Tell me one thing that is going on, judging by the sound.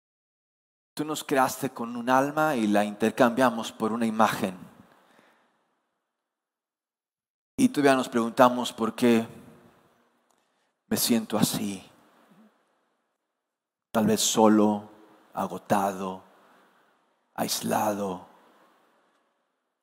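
A man speaks with animation through a microphone, with pauses, in an echoing hall.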